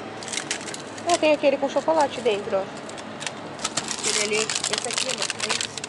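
Plastic packets rustle and crinkle as a hand rummages through them.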